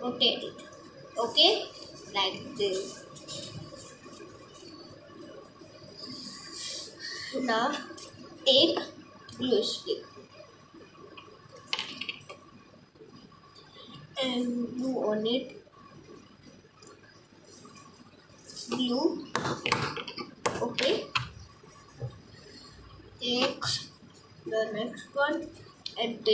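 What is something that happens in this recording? A girl talks calmly and close by.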